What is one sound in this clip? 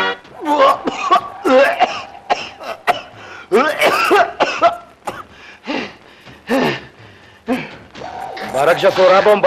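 A man wails and sobs loudly in distress.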